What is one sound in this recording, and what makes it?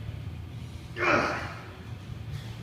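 A man grunts loudly with effort.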